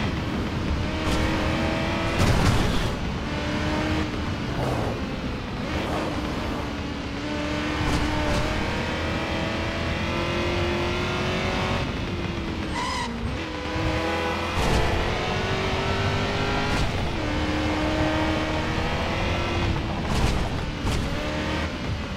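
A V8 sports car engine revs hard, climbing through the gears and shifting.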